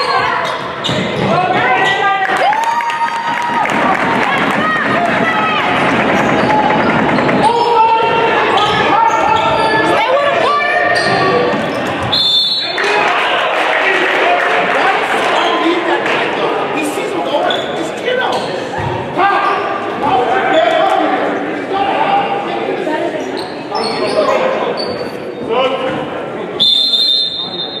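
A crowd cheers and chatters loudly in an echoing gym.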